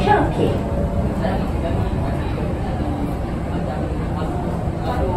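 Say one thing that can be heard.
A train rumbles steadily along an elevated track, heard from inside a carriage.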